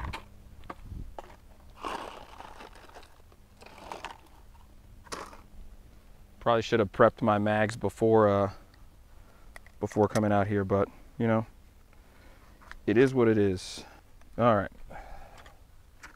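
Dry leaves rustle and crunch as a man kneels on the ground.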